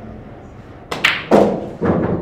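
A cue strikes a billiard ball with a sharp clack.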